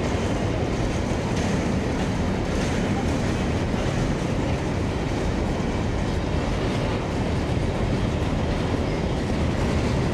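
A long freight train rumbles steadily past, close by.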